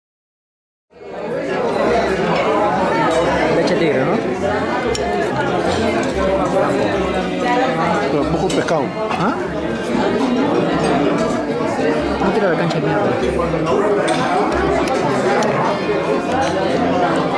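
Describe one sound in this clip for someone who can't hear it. Many people chatter in a busy room.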